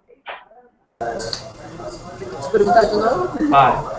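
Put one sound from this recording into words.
A young woman talks over an online call.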